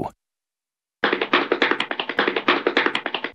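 A young cartoon character giggles in quick bursts.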